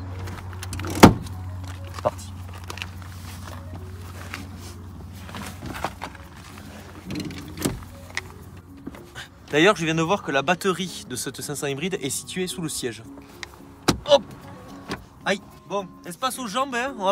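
A car seat creaks and thumps as a young man climbs in and shifts about.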